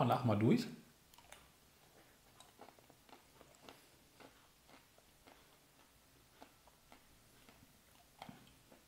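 A man chews food with soft wet clicks.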